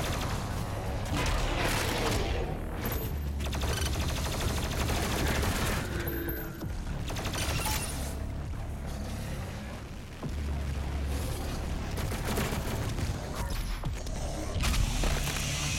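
Loud music with heavy low beats plays throughout.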